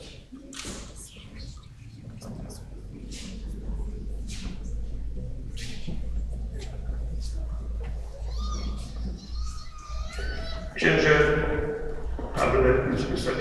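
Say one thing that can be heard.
A crowd murmurs and talks in a large echoing hall.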